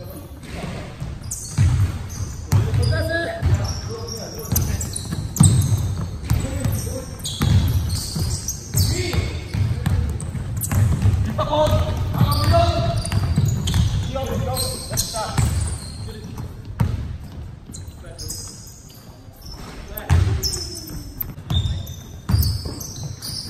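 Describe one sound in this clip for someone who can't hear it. A basketball bounces on a wooden floor, echoing through a large hall.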